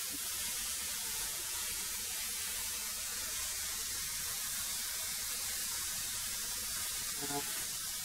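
Wood feeds through a wood planer with a rough grinding sound.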